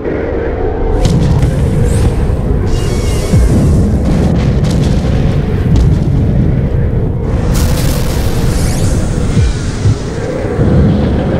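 Loud explosions boom and rumble again and again.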